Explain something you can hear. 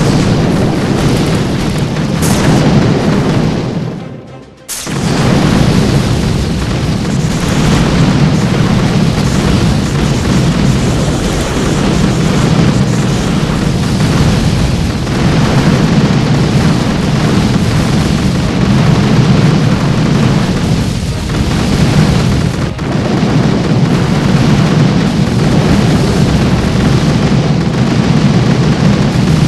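Gunfire crackles rapidly.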